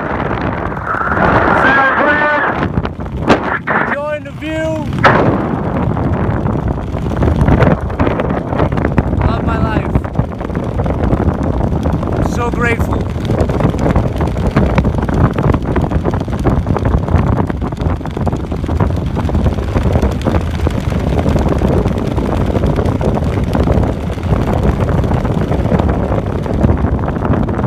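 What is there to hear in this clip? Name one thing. Wind rushes loudly and steadily past the microphone.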